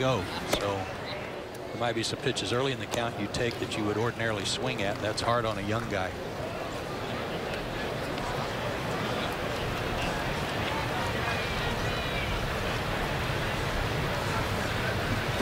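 A large crowd murmurs steadily outdoors.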